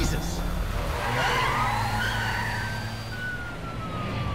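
A police siren wails as a car drives off.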